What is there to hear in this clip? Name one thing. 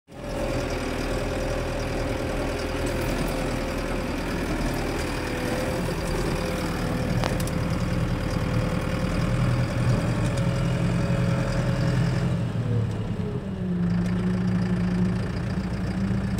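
A tractor engine drones steadily up close.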